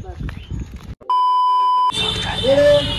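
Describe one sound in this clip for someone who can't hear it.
A steady electronic test tone beeps.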